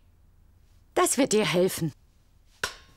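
A woman calls out loudly.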